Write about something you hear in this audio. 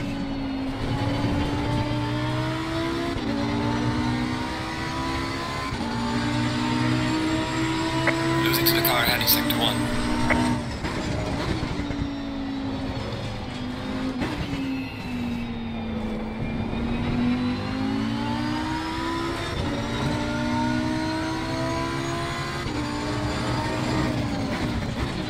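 A racing car engine roars loudly, rising in pitch and dropping with each gear change.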